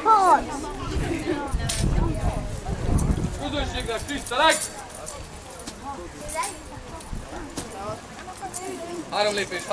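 A man speaks loudly outdoors, addressing a group.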